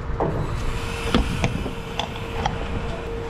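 Fuel rushes into a car's tank.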